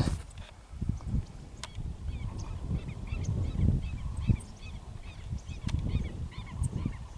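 Small birds chirp repeatedly in the distance.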